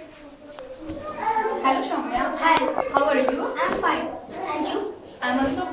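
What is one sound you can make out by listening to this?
A girl speaks with animation close by.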